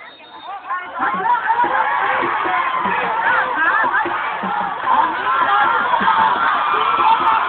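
Young people shout and cheer loudly close by as they run past.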